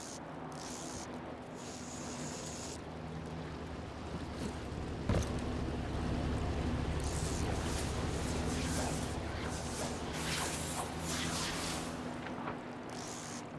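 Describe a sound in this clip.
A motorboat engine roars nearby and then fades.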